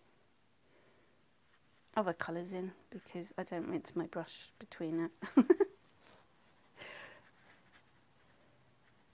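A paintbrush dabs and swishes softly on paper.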